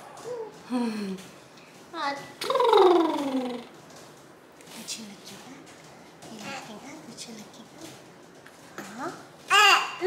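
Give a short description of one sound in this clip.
A baby coos and babbles.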